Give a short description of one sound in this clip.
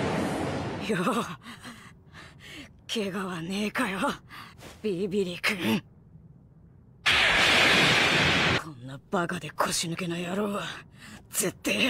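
A boy talks angrily with animation.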